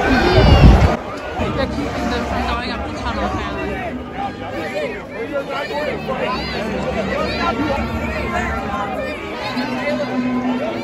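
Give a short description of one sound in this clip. A large crowd chatters and cheers nearby.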